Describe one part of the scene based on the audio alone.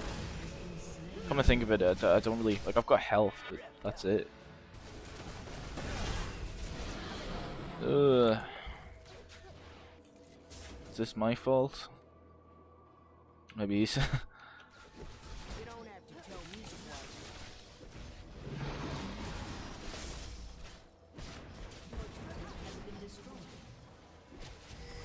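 Magic spells and weapon blows clash in a busy game battle.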